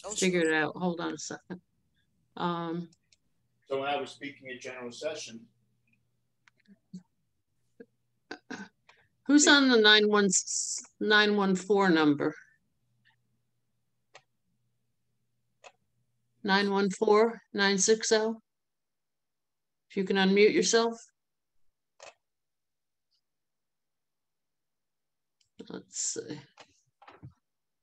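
An older woman speaks calmly in bursts over an online call.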